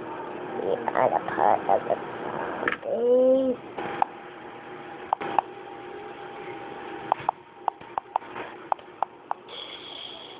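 Small plastic toy pieces click and clack as a hand handles them.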